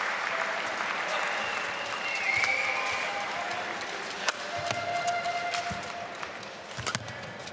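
A crowd in a large hall cheers and murmurs.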